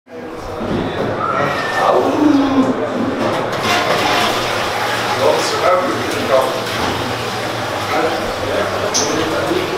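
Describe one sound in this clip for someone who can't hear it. A stream of urine splashes into a toilet bowl.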